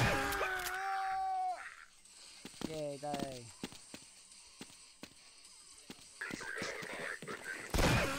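A pistol fires sharp, loud shots.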